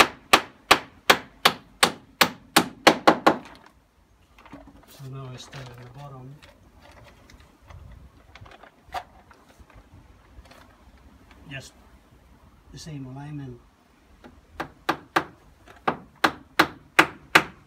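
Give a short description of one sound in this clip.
A hammer taps rapidly on metal.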